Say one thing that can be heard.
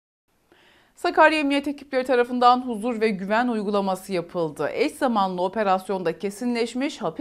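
A young woman speaks calmly into a microphone, reading out.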